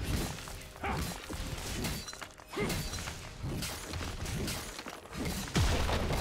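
Game sound effects of a fight clash and burst rapidly.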